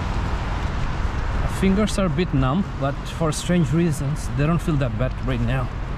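Footsteps crunch on snow close by.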